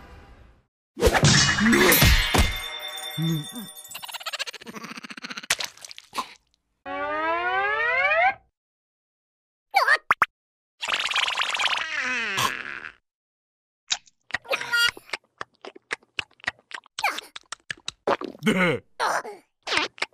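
A cartoon creature babbles and squeals in a high, silly voice.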